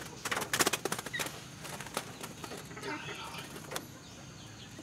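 Small birds flutter their wings in a cage.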